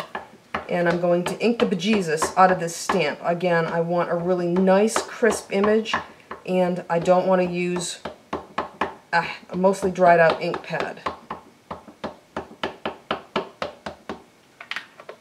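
An ink pad taps quickly and repeatedly on a rubber stamp.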